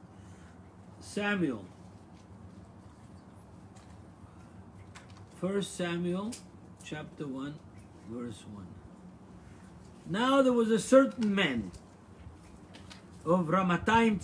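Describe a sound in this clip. An elderly man speaks calmly and close, with pauses.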